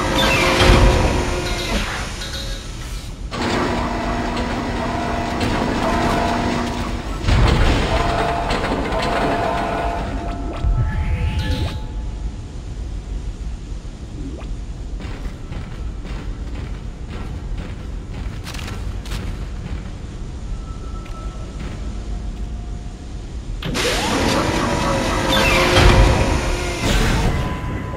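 Steam hisses from a vent.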